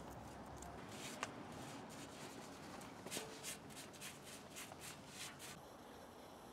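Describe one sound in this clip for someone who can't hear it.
A paintbrush brushes and taps on a metal frame.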